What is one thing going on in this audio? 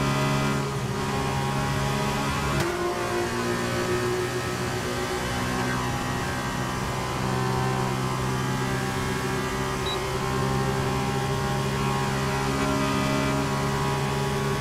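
A racing car engine whines loudly at high revs.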